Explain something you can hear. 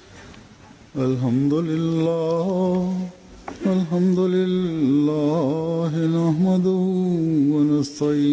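An elderly man chants in a loud, drawn-out voice through a microphone in a large echoing hall.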